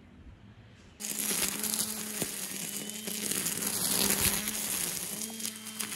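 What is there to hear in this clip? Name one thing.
A string trimmer whines loudly as it cuts through weeds.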